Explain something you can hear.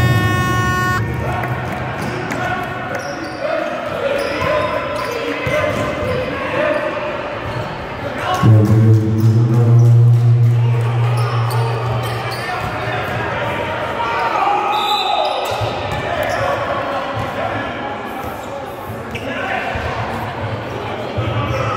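A basketball bounces on a hard floor, echoing.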